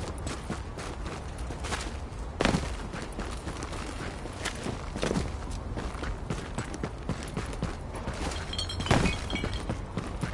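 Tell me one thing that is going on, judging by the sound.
Footsteps crunch through snow and thump on wooden boards.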